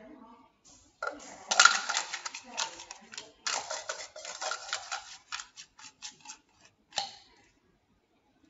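Plastic cups clatter and click quickly as a boy stacks and unstacks them.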